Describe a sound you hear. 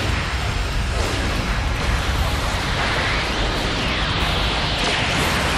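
A loud energy beam blasts and roars with a booming rumble.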